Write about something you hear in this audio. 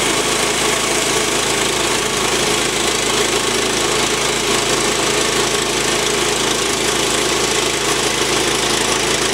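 A band saw whines as it cuts through a log.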